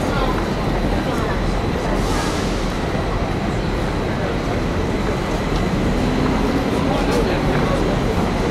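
Footsteps tap on pavement nearby.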